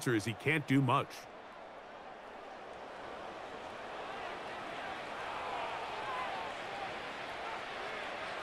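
A large stadium crowd murmurs and cheers steadily in the distance.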